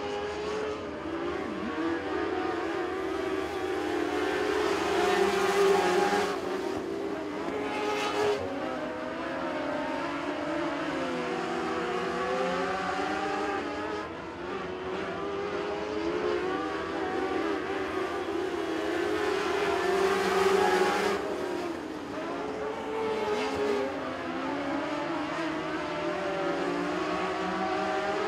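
Several race car engines roar and whine as the cars speed around a dirt track outdoors.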